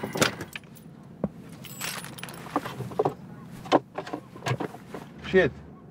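Small objects click and rattle as they are handled.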